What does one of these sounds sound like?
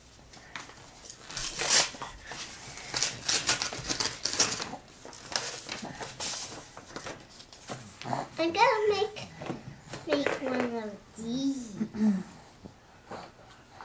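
Play dough tools tap and clatter on a table.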